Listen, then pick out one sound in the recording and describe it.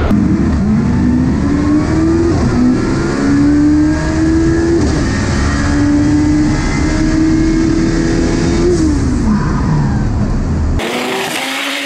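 A car engine roars loudly from inside the cabin, revving up through the gears.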